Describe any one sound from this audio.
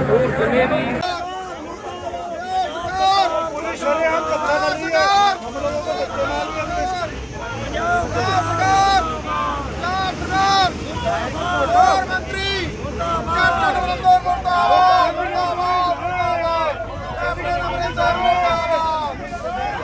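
A man shouts slogans loudly, close by.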